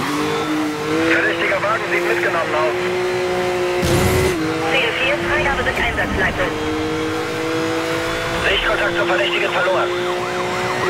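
Tyres squeal in short bursts through corners.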